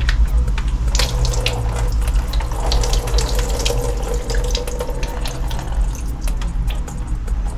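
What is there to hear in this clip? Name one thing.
Water pours and splashes into a metal sink.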